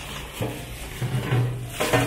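Plastic wrapping rustles and crinkles.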